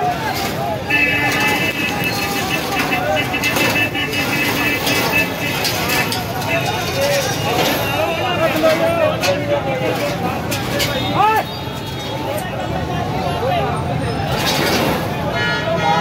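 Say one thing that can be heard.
A large crowd of men shouts and clamours close by.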